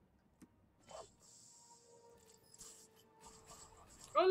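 A smoke grenade hisses loudly.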